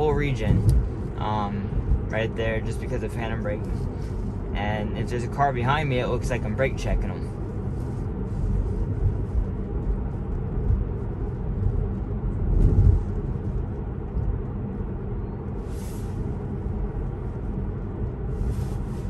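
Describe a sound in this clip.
A car hums and its tyres rumble steadily on the road from inside the cabin.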